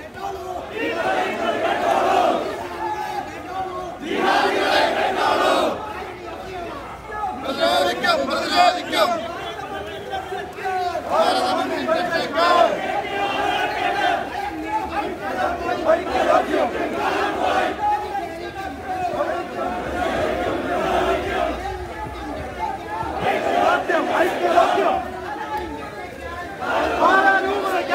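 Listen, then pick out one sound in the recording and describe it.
A crowd of men chants slogans loudly in unison outdoors.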